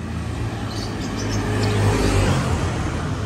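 A motorcycle engine hums as it passes close by.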